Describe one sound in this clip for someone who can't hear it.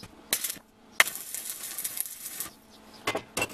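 An arc welder crackles and buzzes.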